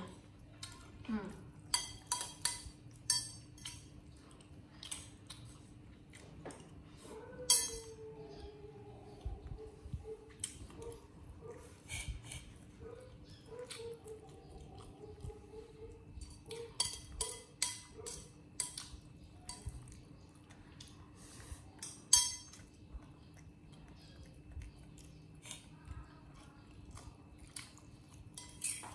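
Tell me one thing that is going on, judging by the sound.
A spoon clinks and scrapes against a bowl.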